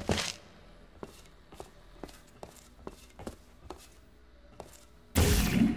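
Footsteps tap steadily on a hard surface.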